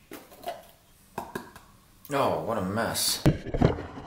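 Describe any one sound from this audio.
A glass clinks as it is set down on a counter.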